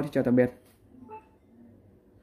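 A rice cooker gives a short electronic beep.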